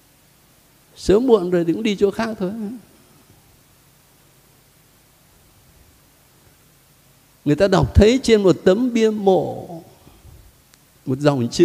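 An elderly man speaks calmly into a microphone, with pauses between phrases.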